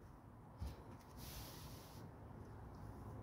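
A sheet of paper slides and rustles.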